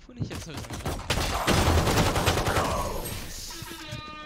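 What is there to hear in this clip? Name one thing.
Gunfire bursts loudly from a game.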